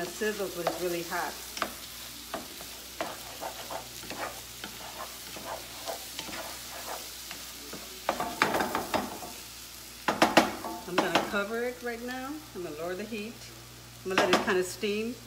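A spatula scrapes and stirs food in a frying pan.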